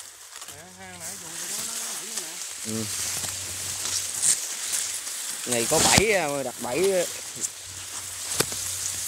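Feet rustle through dry grass and leaves.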